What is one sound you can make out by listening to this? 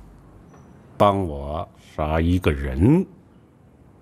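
A middle-aged man speaks tensely, close by.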